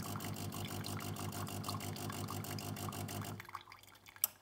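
A coffee machine grinds beans with a pulsing whir.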